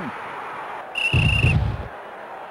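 A game's short electronic chime sounds.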